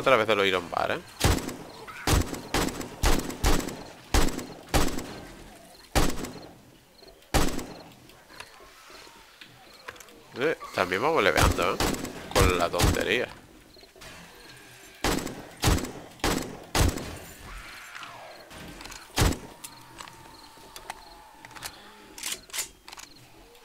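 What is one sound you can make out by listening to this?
A rifle fires sharp, loud shots again and again.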